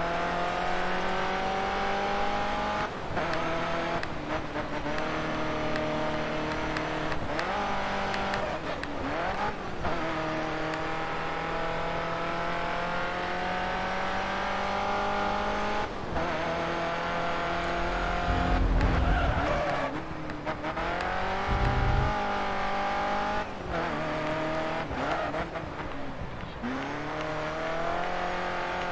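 A racing car engine roars at high revs, rising in pitch and dropping sharply with each gear change.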